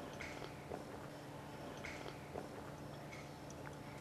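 An elderly man sips water from a glass.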